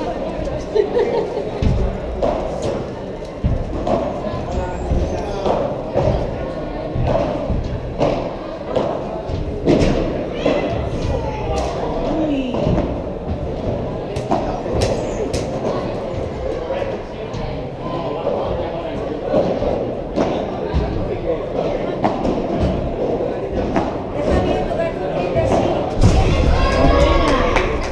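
Young men call out to each other during play.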